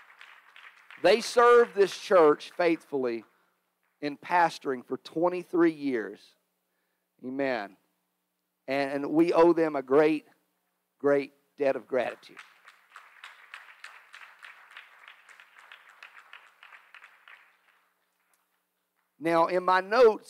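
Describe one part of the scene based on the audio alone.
A middle-aged man speaks through a microphone and loudspeakers, in short, emphatic bursts with pauses.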